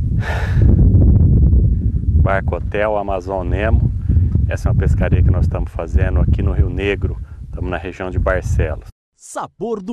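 A man speaks calmly and cheerfully to a microphone, outdoors.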